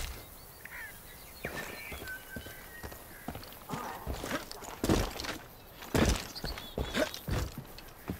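Footsteps crunch on rock and gravel.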